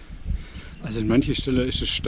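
A middle-aged man speaks close to a microphone.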